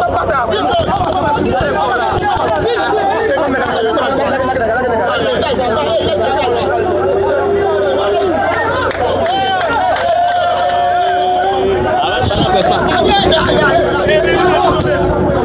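A crowd of men and women talk and shout over one another close by.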